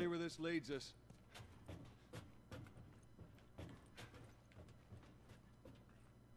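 Footsteps thud on metal stairs.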